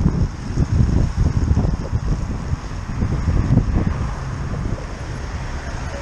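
Wind buffets loudly against a moving bicycle.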